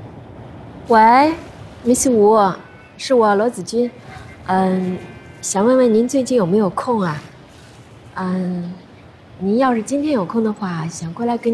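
A young woman talks cheerfully on a phone, close by.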